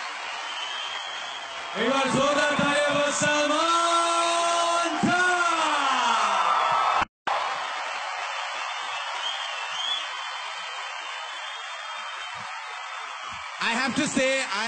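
A crowd claps and cheers in a large hall.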